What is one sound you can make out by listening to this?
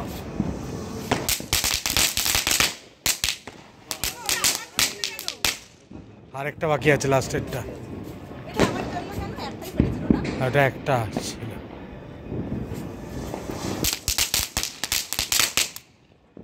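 A firework fountain crackles and hisses nearby.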